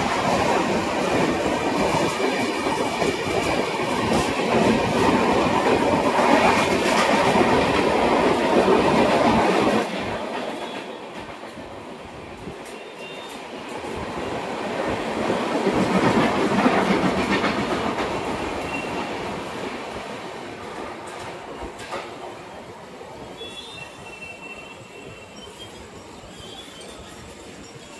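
A commuter train rumbles into the station and slowly comes to a stop.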